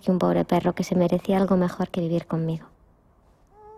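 A young woman speaks loudly and close by.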